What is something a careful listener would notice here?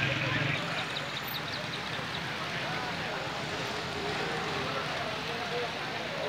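A motorbike engine idles close by.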